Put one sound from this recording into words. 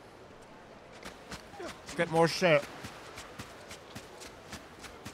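Footsteps pad quickly on sand.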